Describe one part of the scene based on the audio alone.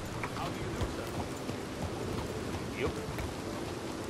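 A horse's hooves clop on wet cobblestones.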